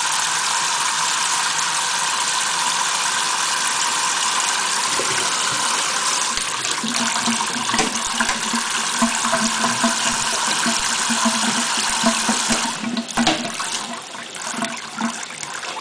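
Water from a tap sprays and splashes steadily into a metal sink.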